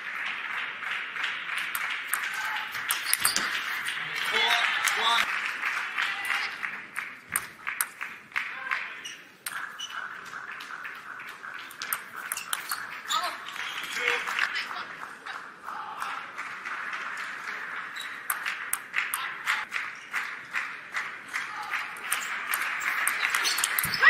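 A table tennis ball clicks back and forth off bats and a table in quick rallies.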